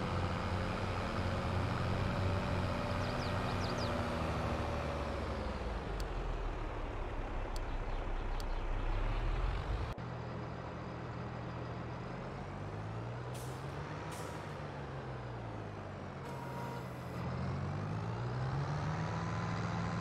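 A tractor engine rumbles steadily as it drives, rising and falling in pitch.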